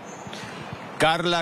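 A man speaks calmly into a microphone outdoors.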